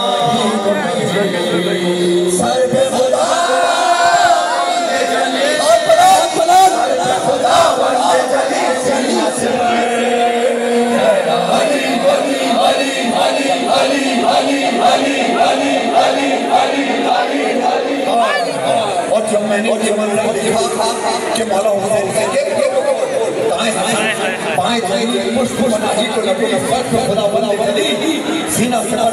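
A large crowd chants along together.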